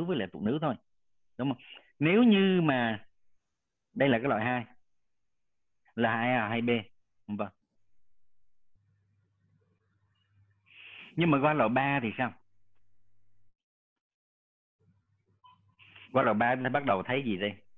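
A man lectures calmly over an online call, in short phrases with pauses.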